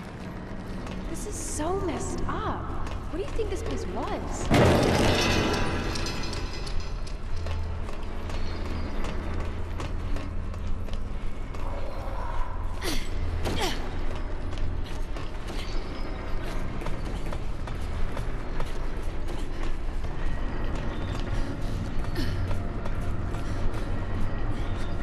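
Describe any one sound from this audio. Footsteps clank on metal pipes.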